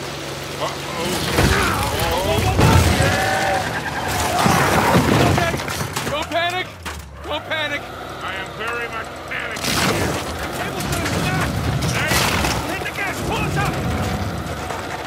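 Rocks tumble and crash down a slope.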